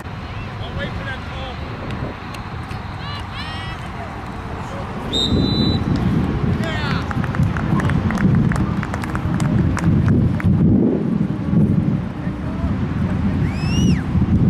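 Adult spectators shout and cheer from a distance outdoors.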